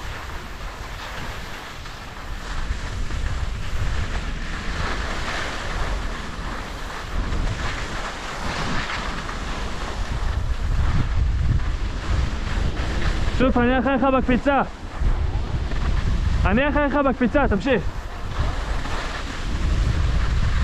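Wind buffets loudly, rumbling low.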